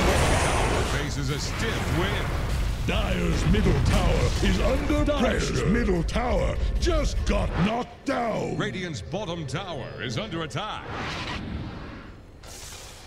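Magic blasts and clashing weapons burst out in a hectic fight.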